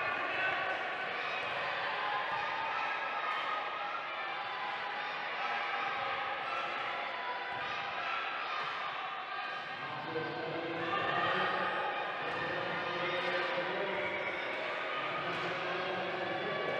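Wheelchair tyres squeak sharply on a hard floor.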